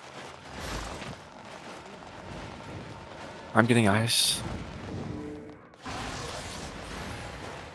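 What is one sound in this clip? Game spell effects crackle and burst in a fight.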